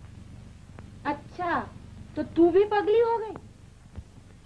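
A woman speaks calmly through an old film soundtrack.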